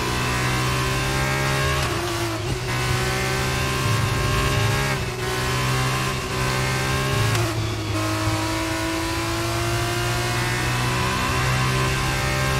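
A racing car engine roars at high revs, dropping briefly at gear changes and climbing again.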